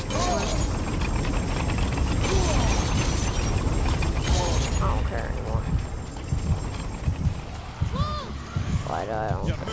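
A low, rumbling roar goes on steadily.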